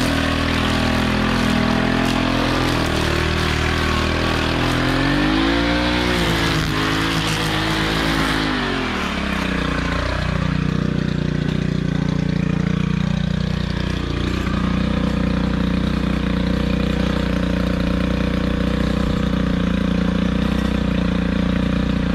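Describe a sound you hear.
A string trimmer whirs steadily, its engine pitch dipping and rising.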